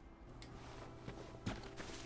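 Footsteps rustle through low plants.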